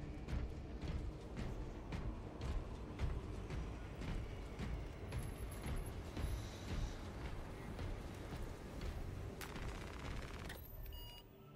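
Heavy armored footsteps thud quickly on a metal floor.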